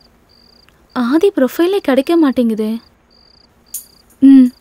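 A young woman speaks quietly on a phone.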